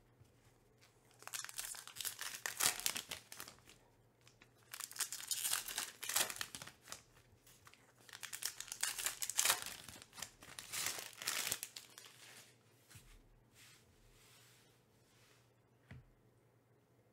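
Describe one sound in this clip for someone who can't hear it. Trading cards shuffle and tap against each other.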